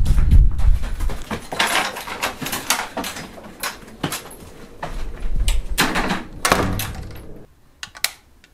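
Footsteps thud as a person walks indoors.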